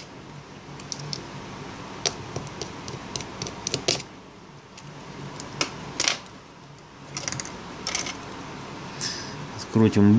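Fingers click and tap on the small metal parts inside an opened smartphone.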